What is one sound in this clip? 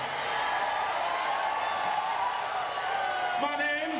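A crowd cheers and shouts in a large room.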